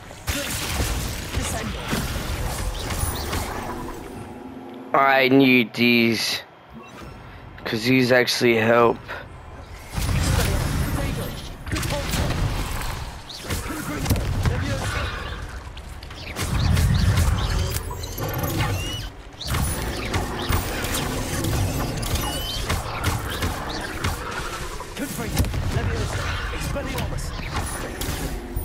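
Magic spells crackle and blast in bursts.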